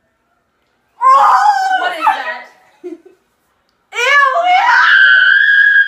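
Young girls laugh and shriek loudly nearby.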